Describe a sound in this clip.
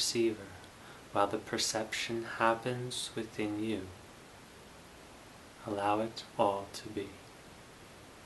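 A young man speaks calmly and softly, close by.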